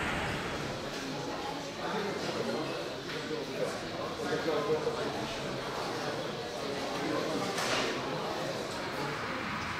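A crowd of people chatters in a large, echoing hall.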